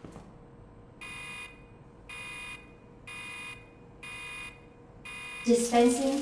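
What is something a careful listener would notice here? A machine beeps in short, even bursts.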